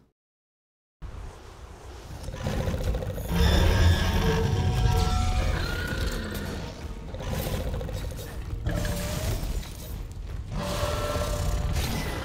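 A giant beast stomps and moves with deep rumbling thuds.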